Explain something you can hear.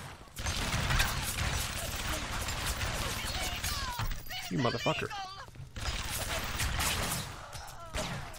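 Pistol shots ring out and echo.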